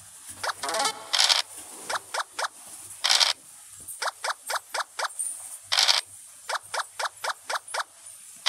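Game pieces hop along the board with short rising blips.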